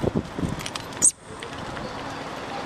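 A monkey gives a short shriek.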